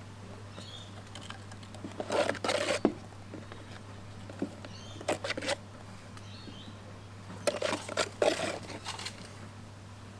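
A spoon scrapes inside a plastic tub.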